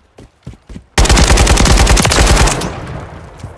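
A rifle fires a rapid, loud burst of shots.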